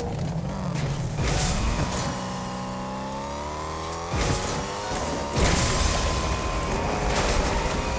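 A car engine revs and roars as the car speeds up.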